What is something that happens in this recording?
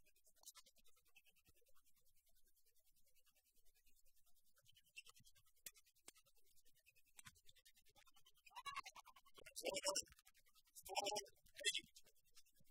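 Rackets strike a shuttlecock back and forth in a rally.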